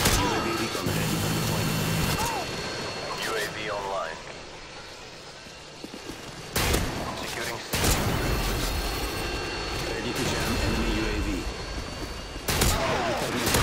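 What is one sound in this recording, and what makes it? Gunshots blast in short bursts.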